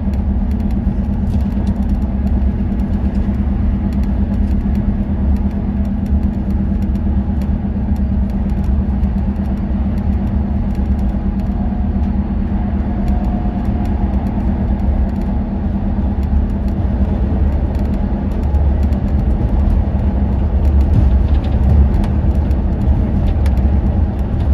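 A vehicle's engine drones steadily from inside the cabin while driving on a motorway.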